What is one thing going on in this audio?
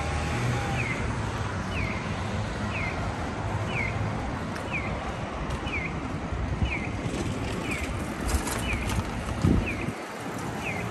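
Traffic rumbles steadily on a nearby street.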